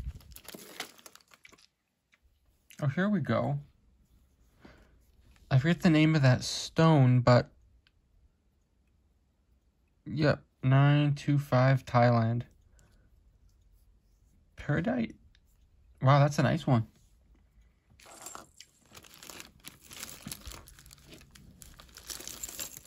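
Metal jewellery clinks and rattles as it is stirred by hand.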